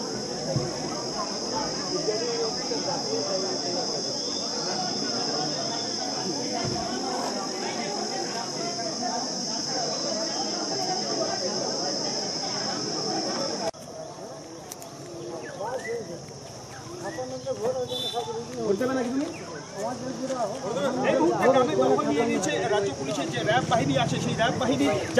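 Several men talk and murmur at once outdoors.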